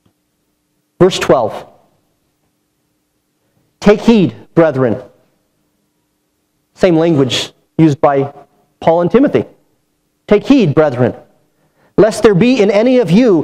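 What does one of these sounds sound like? A man speaks with emphasis through a microphone, pausing between phrases.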